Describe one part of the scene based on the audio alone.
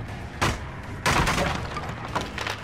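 A wooden pallet is knocked down with a crash.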